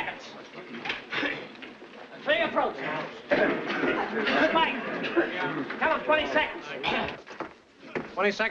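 A crowd of people chatter and call out in a large room.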